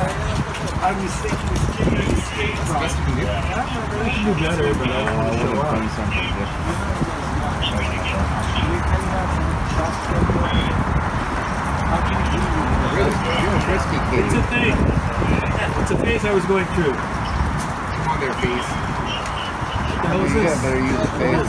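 A man talks nearby in a casual tone.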